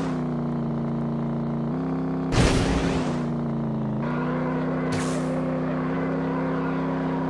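A kart engine hums steadily.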